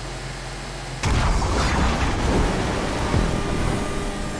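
A rocket engine roars loudly.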